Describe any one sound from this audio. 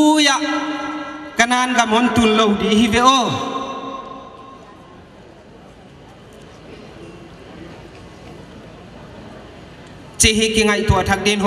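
A middle-aged man sings slowly into a microphone, heard through loudspeakers.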